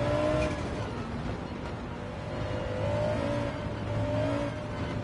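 A racing car engine hums and revs up and down.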